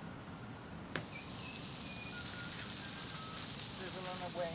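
A plastic bag crinkles and rustles in someone's hands.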